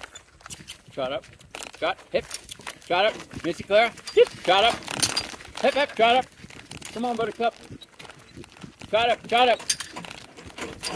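An elderly man talks calmly and cheerfully close to the microphone.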